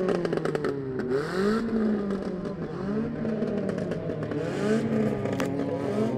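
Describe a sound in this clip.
Tyres skid and spin on dirt and grass.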